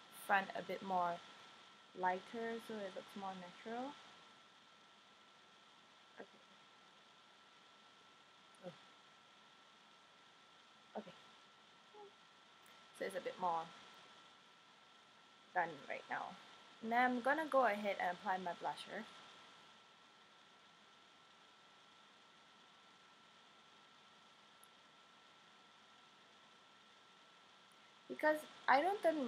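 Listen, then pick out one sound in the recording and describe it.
A young woman talks calmly and close by, in short bursts.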